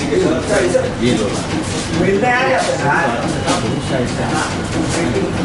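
Several men talk over one another close by.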